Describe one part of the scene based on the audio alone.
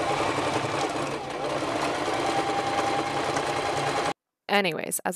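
A sewing machine hums and stitches rapidly.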